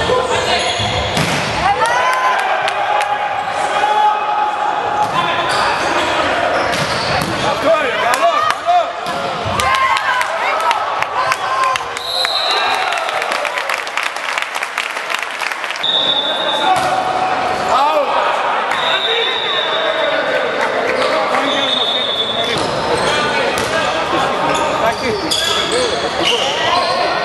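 Young men shout and call to each other in an echoing hall.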